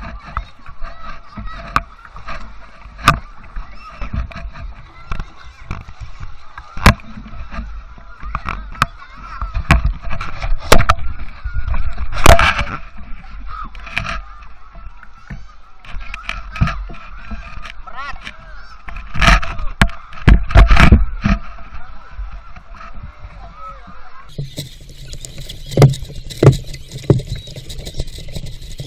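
A wooden paddle splashes and dips in water.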